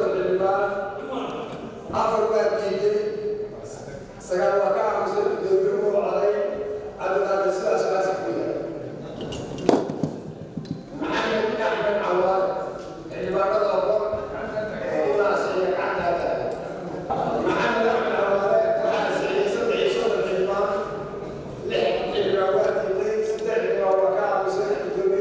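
An elderly man speaks steadily into a microphone, reading out with pauses.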